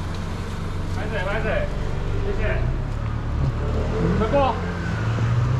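Several people talk nearby in casual voices.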